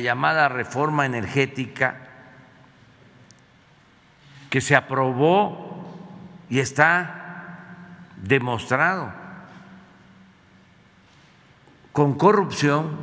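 An elderly man speaks emphatically into a microphone, in bursts with pauses, in a room with slight echo.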